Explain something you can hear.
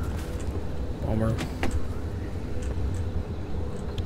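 A heavy car door clunks open.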